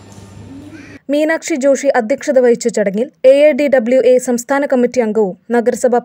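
A woman speaks calmly through a microphone over loudspeakers in an echoing hall.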